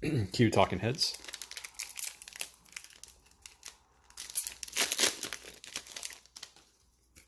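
Plastic wrapping crinkles and tears as a card pack is opened.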